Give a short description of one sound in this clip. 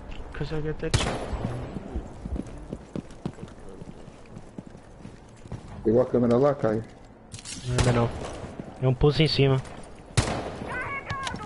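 A rifle fires single sharp shots.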